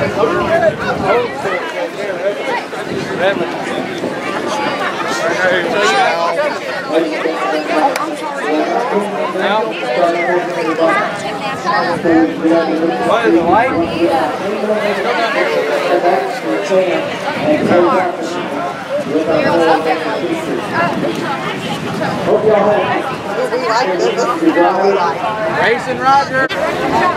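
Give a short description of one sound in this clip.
A crowd of men, women and children chatters all around, close by and outdoors.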